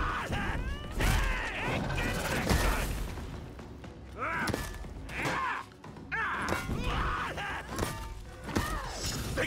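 Metal blades clash and strike in quick bursts.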